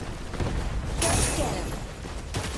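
A magic blast crackles and booms.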